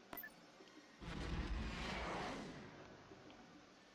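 A soft electronic whoosh sweeps by and fades.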